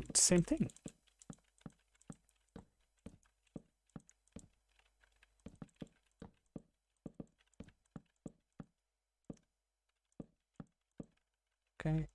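Wooden blocks are placed one after another with short, soft knocks.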